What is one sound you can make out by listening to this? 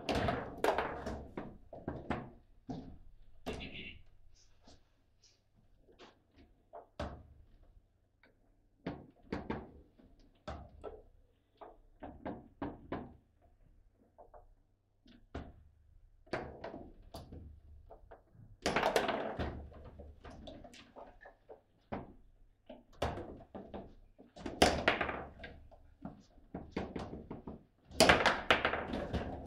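Rods slide and rattle in a foosball table.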